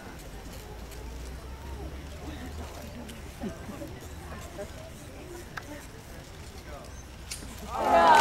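Scissors snip through a ribbon.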